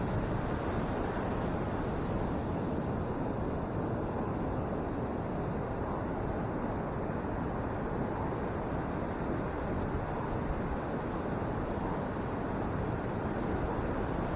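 Ocean waves break and wash steadily onto the shore.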